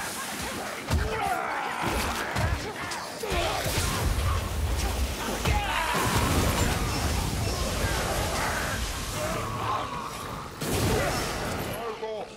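Guns fire in sharp, loud bangs.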